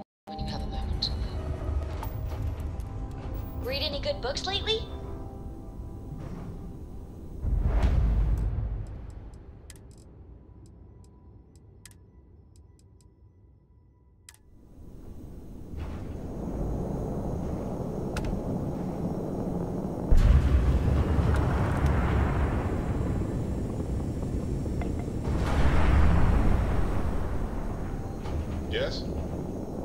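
A spaceship engine rumbles low and steadily, swelling in surges.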